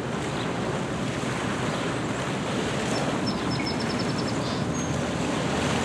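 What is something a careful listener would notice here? Small waves lap gently against a stony shore.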